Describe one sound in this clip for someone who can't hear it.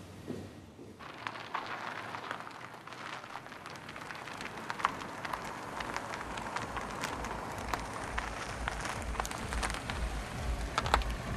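A car engine idles and rumbles nearby.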